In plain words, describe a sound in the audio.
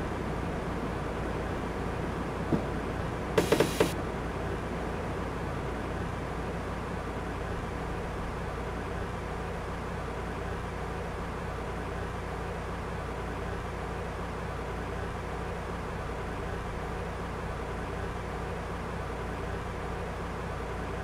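A train engine rumbles steadily as the train rolls along the tracks.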